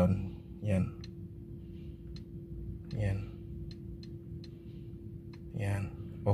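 Buttons on a steering wheel click softly several times.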